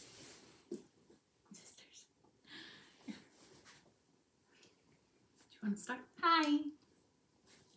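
Two young women laugh close by.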